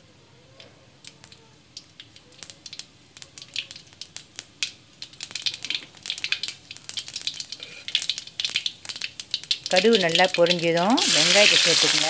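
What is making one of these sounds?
Hot oil pops and crackles in a pan, growing busier.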